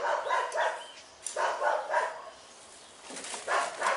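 A hoe digs and scrapes into soil.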